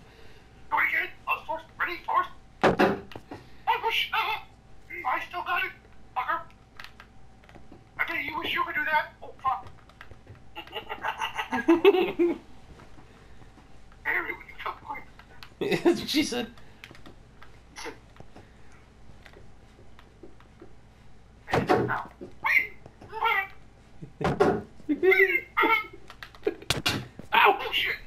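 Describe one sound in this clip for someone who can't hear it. A game villager makes short nasal grunts.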